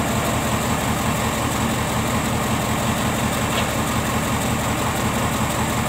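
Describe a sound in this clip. A diesel excavator engine rumbles as the excavator works.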